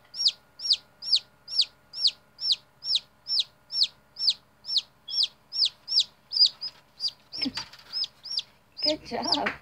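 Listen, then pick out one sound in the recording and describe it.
A newly hatched chick peeps loudly and rapidly, over and over.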